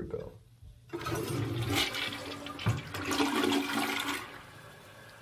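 A toilet flushes with a rush of swirling water.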